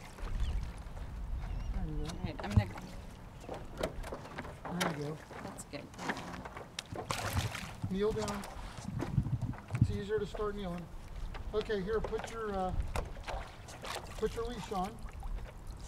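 Water splashes against a paddle board.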